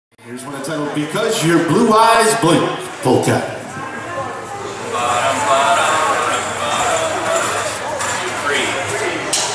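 A live band plays a lively polka with accordions, saxophone and drums.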